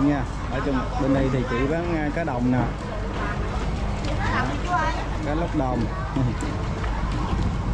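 A woman talks close by.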